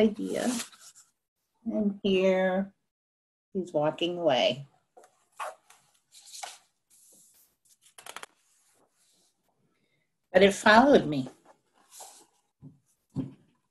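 An older woman reads aloud with expression over an online call.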